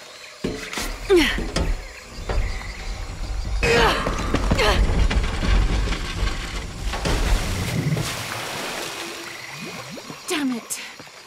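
A young woman grunts and gasps with effort close by.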